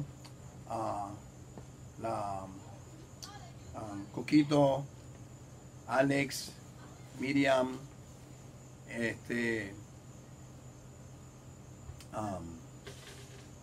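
An elderly man sings in short phrases.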